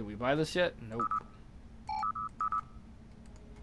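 A computer game's interface gives short electronic beeps.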